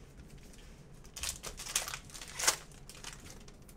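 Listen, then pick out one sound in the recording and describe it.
A foil card pack crinkles and tears open.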